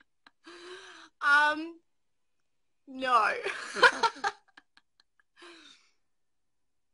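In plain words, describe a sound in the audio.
A young woman talks cheerfully up close.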